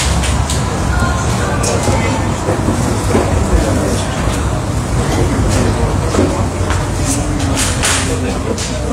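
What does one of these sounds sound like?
Several adults talk and chat nearby.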